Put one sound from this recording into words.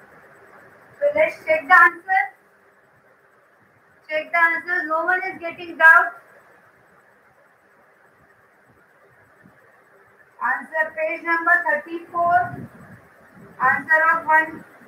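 A woman speaks clearly and with animation, close by.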